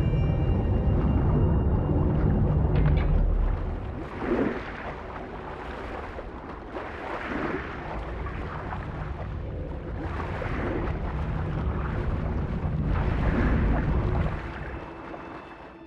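A deep underwater rumble drones steadily, then fades away.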